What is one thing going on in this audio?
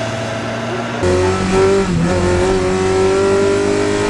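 A car engine roars loudly from inside the cabin.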